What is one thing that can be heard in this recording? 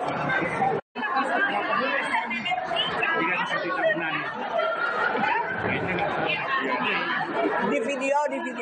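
Middle-aged women chat and laugh close by.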